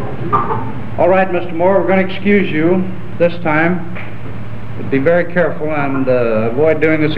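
A man speaks clearly and formally, heard through an old, hissy recording.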